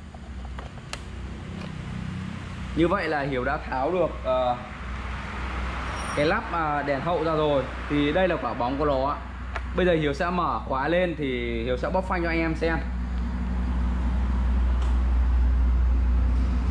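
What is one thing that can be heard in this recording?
Plastic parts click as a tail light cover is fitted.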